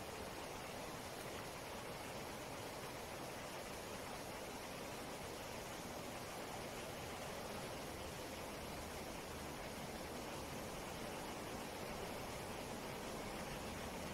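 Wind rustles through leaves outdoors.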